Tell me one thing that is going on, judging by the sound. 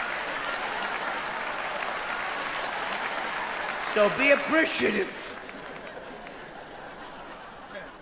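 An audience laughs and claps in a large hall.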